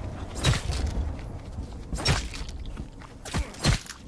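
Beasts snarl and growl close by.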